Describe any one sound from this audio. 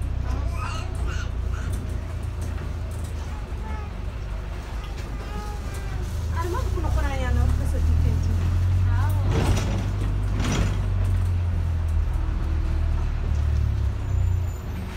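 A bus engine rumbles low and steady as the bus drives along.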